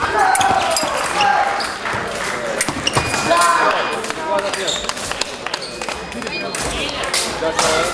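Voices of a crowd shout and cheer in an echoing hall.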